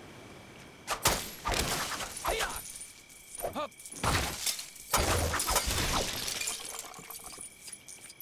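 Objects smash and clatter in bursts.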